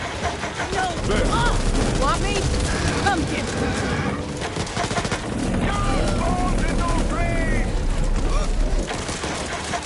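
Zombies snarl and groan close by.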